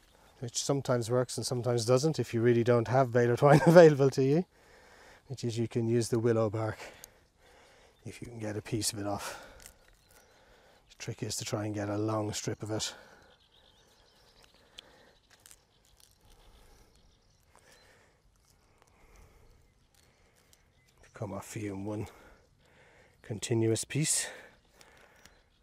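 A middle-aged man speaks calmly into a clip-on microphone, outdoors.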